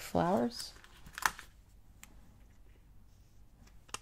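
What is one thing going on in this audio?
A sticker peels off a backing sheet with a soft crackle.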